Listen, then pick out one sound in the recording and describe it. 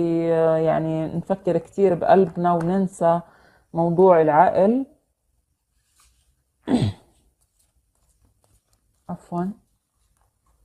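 A woman speaks close by, calmly and with pauses.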